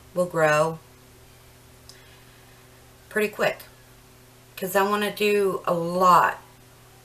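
A middle-aged woman speaks calmly and close by, in short phrases.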